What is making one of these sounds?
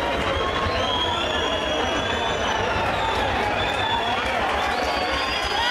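Hooves drum in a fast, even patter.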